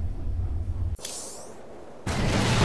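A game menu gives a short electronic whoosh as an item is selected.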